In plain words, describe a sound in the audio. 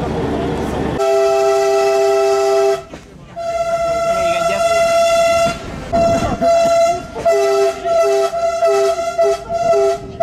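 A diesel train engine drones loudly as the train rolls along.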